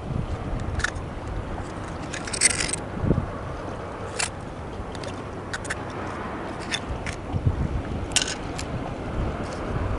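A knife clicks open and closed.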